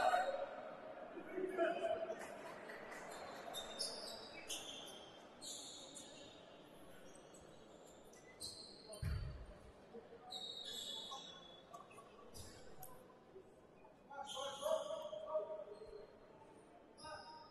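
Sneakers squeak sharply on a hardwood court in a large echoing hall.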